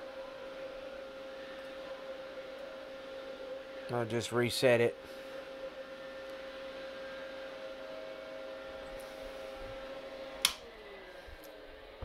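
An electronic device hums with a steady whine.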